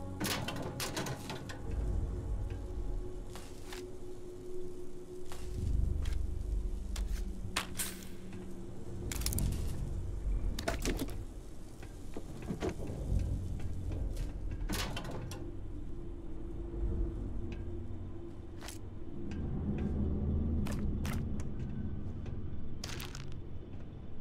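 Metal locker doors clank open and shut.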